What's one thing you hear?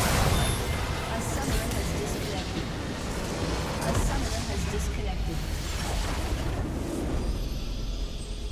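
Magic blasts and clashing weapons crash loudly in a chaotic fight.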